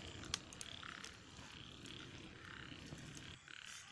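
A stick pokes and scrapes through the embers.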